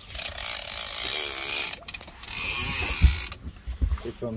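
A fishing reel's drag buzzes loudly as line pulls out.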